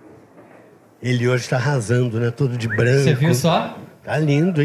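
A man speaks with animation through a microphone.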